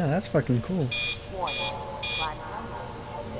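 An electronic alarm beeps three times in quick succession.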